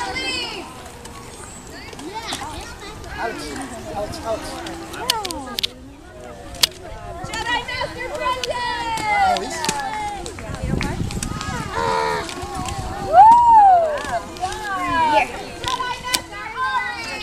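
Children's voices chatter and call out outdoors.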